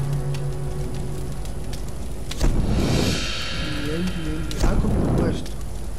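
A campfire crackles softly.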